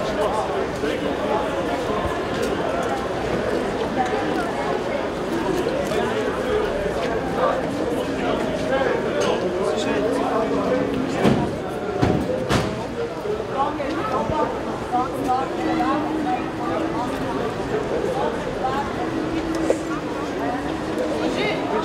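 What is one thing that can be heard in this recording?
A tram hums past on its tracks.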